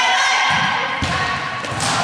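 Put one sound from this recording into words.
A volleyball is struck with a dull smack.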